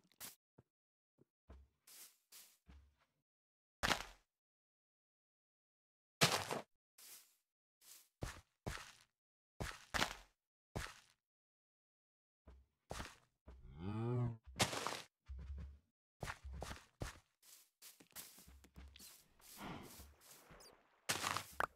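Footsteps thud softly on grass and dirt.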